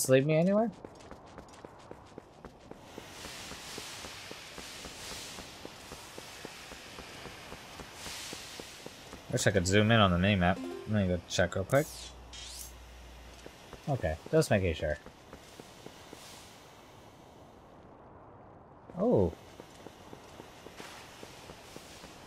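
Footsteps patter quickly on a stone floor.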